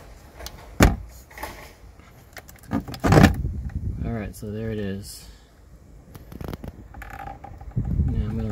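Plastic parts click and knock as they are handled.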